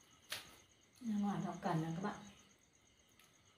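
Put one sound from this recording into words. An elderly woman speaks briefly and calmly, close by.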